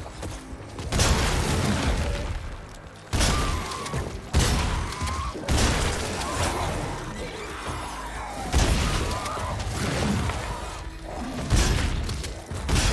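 A gun fires loud blasts.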